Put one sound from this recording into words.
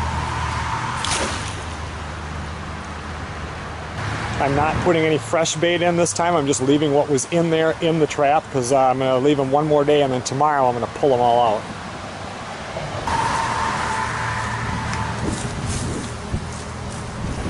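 Shallow river water ripples and gurgles steadily.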